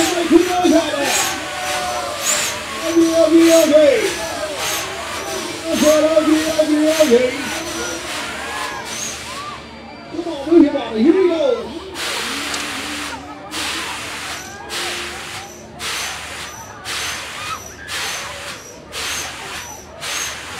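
A fairground ride hisses in repeated bursts.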